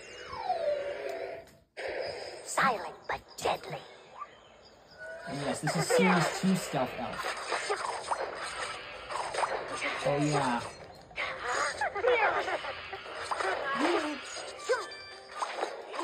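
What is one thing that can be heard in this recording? Video game sound effects chime, zap and whoosh from a television speaker.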